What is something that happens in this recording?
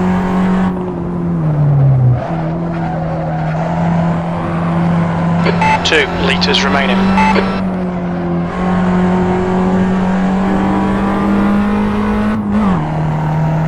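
A small hatchback's engine drops in revs as it shifts gear.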